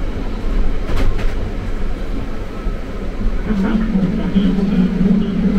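A subway train rumbles and rattles loudly along the track.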